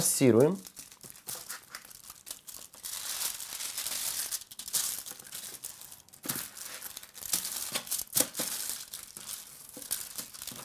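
Foil crinkles as hands rub seasoning into raw meat.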